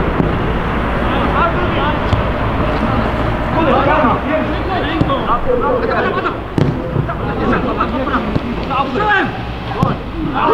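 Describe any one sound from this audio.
Young players shout to each other across a field in the distance.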